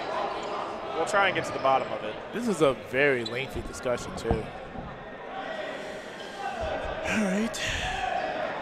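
Young men shout and cheer loudly in a large echoing gym.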